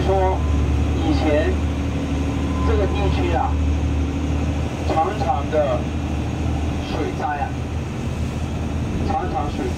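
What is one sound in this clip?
A boat engine drones steadily with a low hum.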